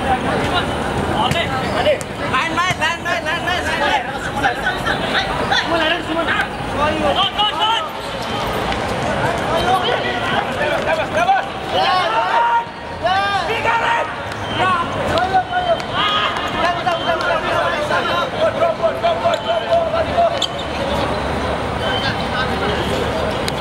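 Men shout and call out across an outdoor court.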